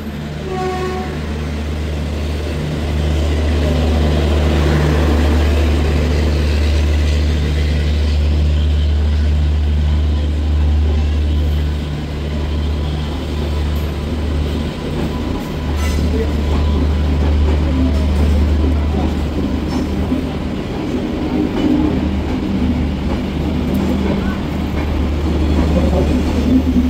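A train rolls past close by with a deep, steady rumble.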